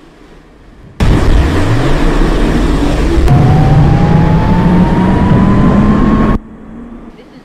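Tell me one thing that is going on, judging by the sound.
A train's electric motor whines, rising in pitch as it speeds up.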